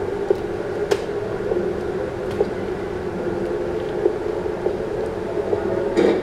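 Footsteps tap on stairs.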